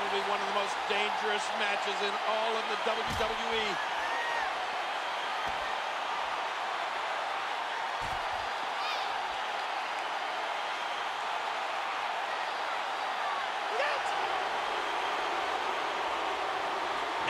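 A large crowd roars steadily in a big arena.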